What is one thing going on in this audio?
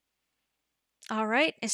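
A young woman speaks briefly and close into a microphone.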